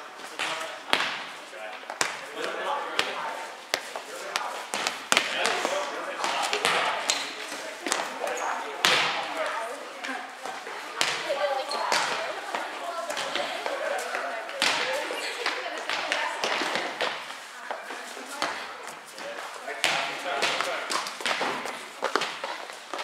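Volleyballs thump sharply off hands and arms, over and over.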